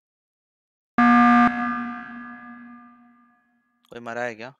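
A loud game alert chime rings out and slowly fades.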